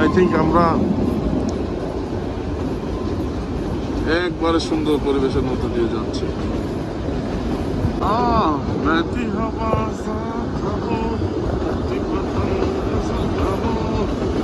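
A train rumbles and clatters steadily along the track.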